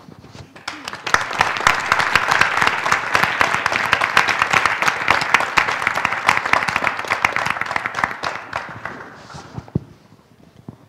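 An audience applauds loudly and then the applause fades away.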